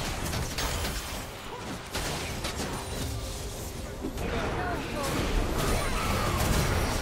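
Game spell effects crackle and burst during a fight.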